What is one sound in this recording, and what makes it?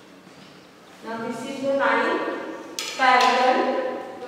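A woman speaks clearly and with animation, close by.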